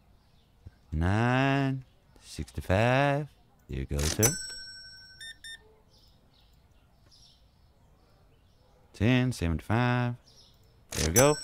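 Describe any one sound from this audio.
An electronic card terminal beeps as keys are pressed.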